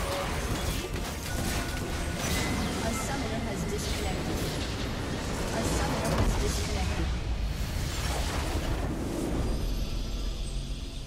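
Game spells and attacks crash and burst loudly.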